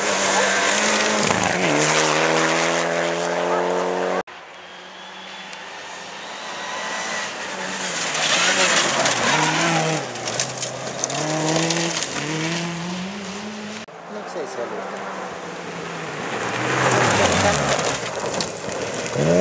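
A rally car engine roars and revs hard as it speeds past.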